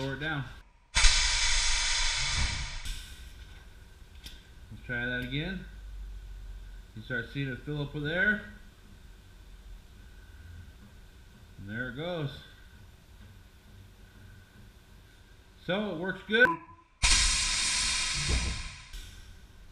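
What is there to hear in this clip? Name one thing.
Compressed air hisses loudly into an air spring in short bursts.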